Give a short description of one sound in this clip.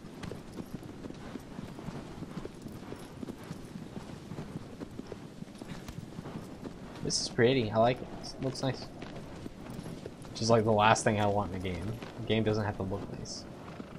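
Horse hooves gallop over grass.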